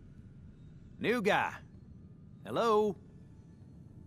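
A young man speaks briefly and casually.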